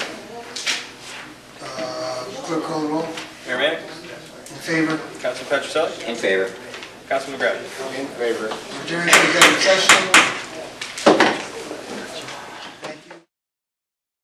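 A man speaks calmly into a microphone in a room with some echo.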